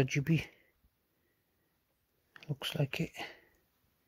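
A cable plug clicks into a socket.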